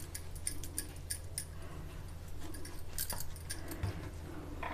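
Glass bangles clink softly.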